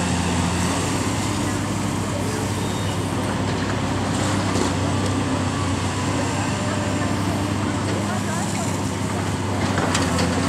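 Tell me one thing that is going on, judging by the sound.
Concrete and bricks crunch and crack as a building is torn down.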